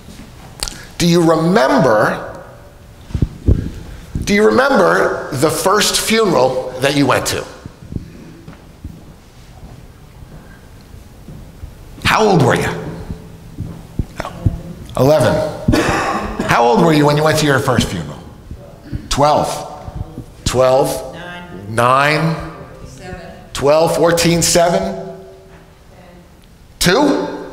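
An elderly man speaks with animation through a microphone, with pauses, in a large echoing room.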